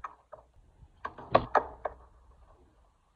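A skateboard clatters onto concrete as a skater falls.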